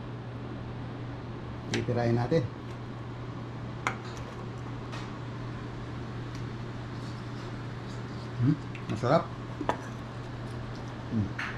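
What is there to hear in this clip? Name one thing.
A metal spoon scrapes and taps on a ceramic plate.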